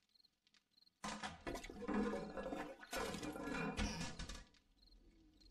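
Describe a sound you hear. Items rustle and clatter as a container is rummaged through.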